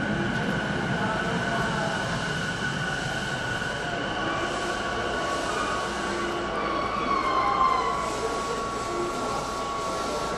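A train rolls slowly in along the rails.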